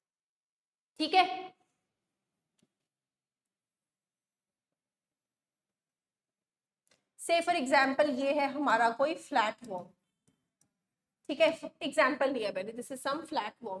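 A young woman speaks calmly and clearly into a close microphone, explaining.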